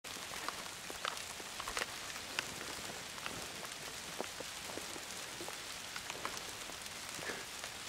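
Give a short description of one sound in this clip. Rain patters steadily on grass outdoors.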